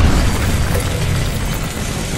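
Heavy metal gears grind and scrape.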